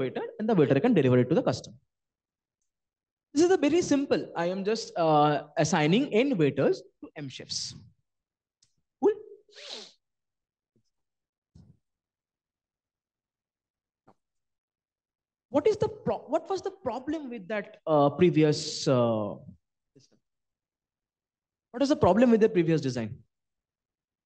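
A man speaks calmly through a microphone, presenting, with pauses.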